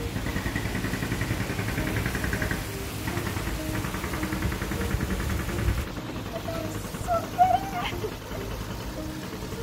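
Wind buffets a nearby microphone outdoors.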